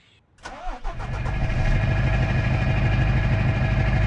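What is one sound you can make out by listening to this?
A diesel semi truck engine idles with a deep rumble.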